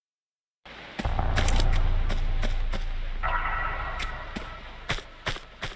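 Footsteps thud on a hard floor in an echoing corridor.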